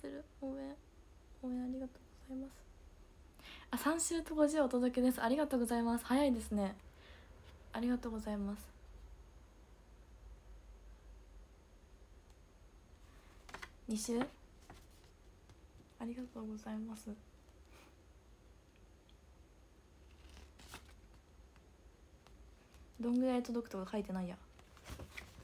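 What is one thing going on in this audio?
A young woman talks casually and close to a microphone, in short bursts with pauses.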